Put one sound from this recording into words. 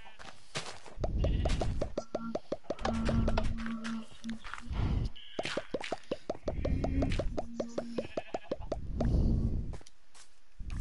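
Dirt blocks crunch and break with repeated soft thuds as they are dug.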